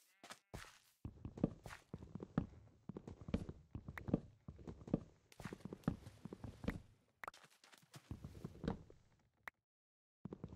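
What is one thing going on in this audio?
An axe chops at wood with quick, repeated knocks.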